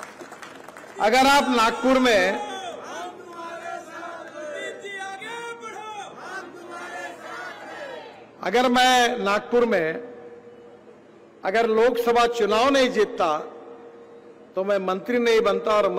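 A middle-aged man speaks forcefully through a microphone and loudspeakers, in bursts with pauses.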